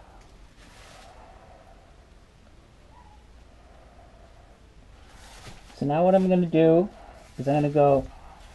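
A brush swishes softly over a wet, sticky surface.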